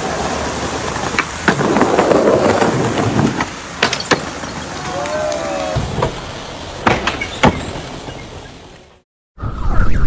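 Skateboard wheels roll over paving stones.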